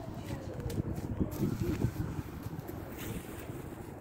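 A boy drops onto dry leaves with a rustling thud.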